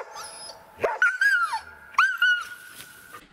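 A dog yelps and whines in a high voice.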